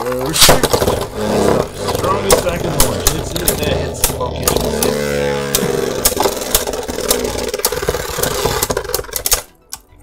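Spinning tops whir and clash with sharp clicks against each other and the walls of a plastic bowl.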